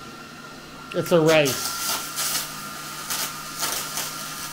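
An electric welding arc crackles and hisses.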